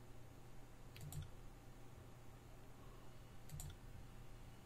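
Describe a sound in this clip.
An interface click sounds.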